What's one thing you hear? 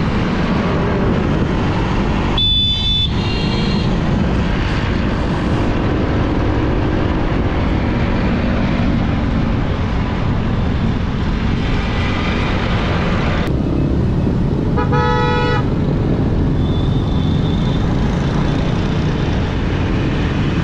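A motor scooter engine hums while riding along a road.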